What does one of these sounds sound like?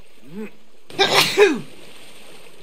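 Water splashes loudly as someone jumps in.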